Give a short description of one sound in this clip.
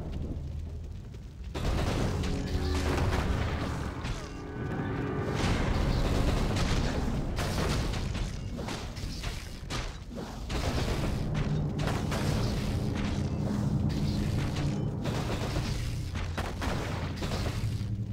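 Swords and axes clash in a fantasy battle.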